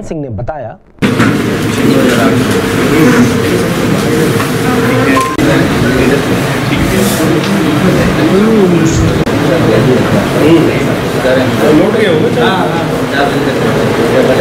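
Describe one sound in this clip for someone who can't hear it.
A crowd of men talks and murmurs indoors.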